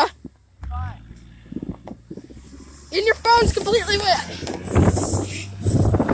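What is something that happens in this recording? A sled scrapes and hisses over snow.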